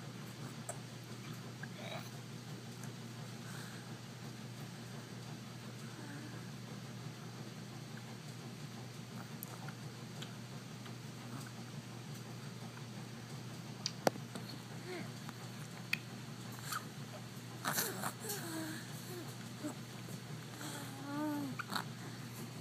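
A baby sucks and gulps from a sippy cup.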